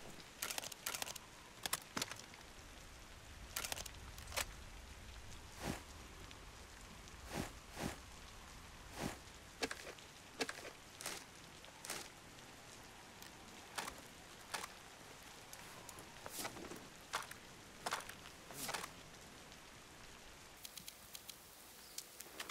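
Short interface clicks and taps sound again and again.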